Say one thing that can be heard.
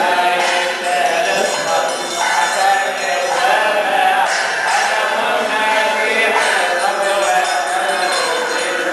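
A group of young boys and men chant a hymn together in unison.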